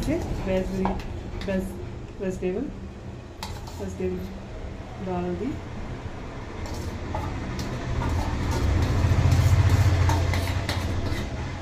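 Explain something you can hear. A metal spoon scrapes and taps against a steel bowl.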